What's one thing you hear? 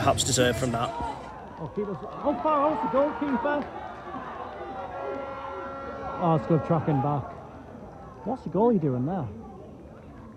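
Spectators at a sports match shout and chatter outdoors.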